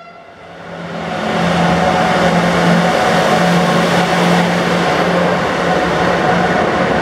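An electric locomotive roars past close by with a loud, humming engine.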